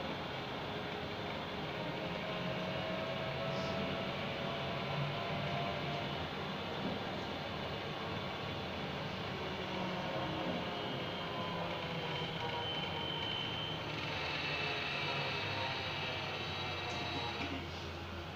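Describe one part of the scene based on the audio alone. Passing cars whoosh by close outside.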